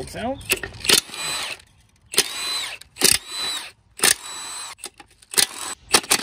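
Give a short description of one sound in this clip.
A cordless impact wrench whirs and hammers in short bursts.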